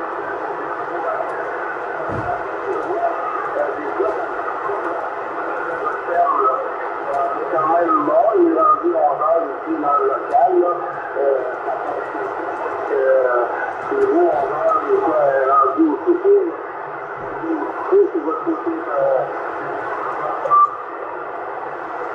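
A radio transceiver's loudspeaker hisses with tinny, crackling static from a weak signal.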